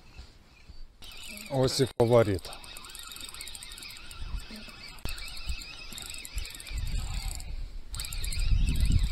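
A fishing reel whirs and clicks as its handle is turned.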